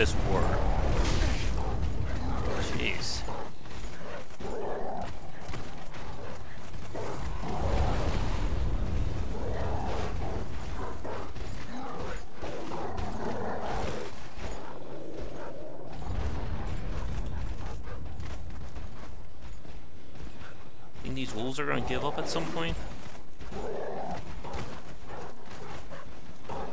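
A wolf snarls and growls.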